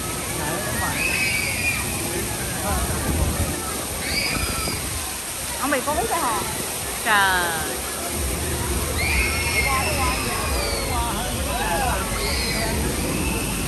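Riders on an amusement ride scream in short bursts.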